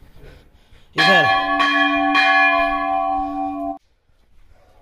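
A temple bell rings out loudly and rings on.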